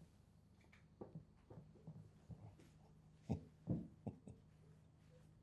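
A man speaks quietly and haltingly nearby.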